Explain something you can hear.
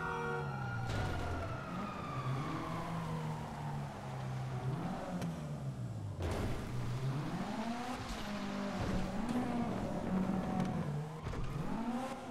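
A car thuds over rough ground.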